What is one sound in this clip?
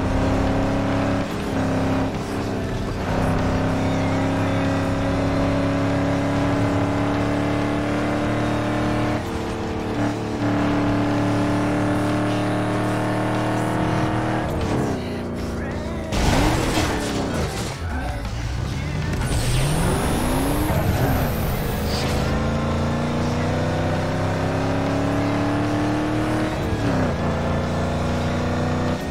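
A car engine roars at high revs, dropping in pitch as it slows, then revving up again.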